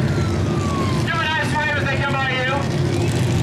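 A siren wails from a pace car.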